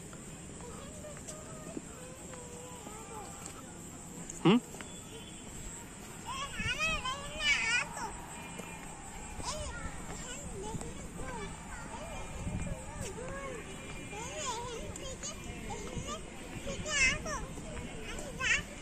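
A young child babbles and squeals close by.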